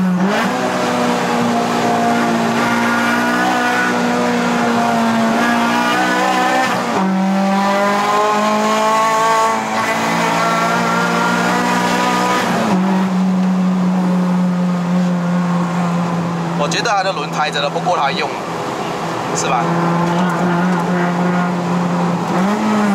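A car engine hums and revs loudly, rising in pitch as it speeds up and dropping as the gears change.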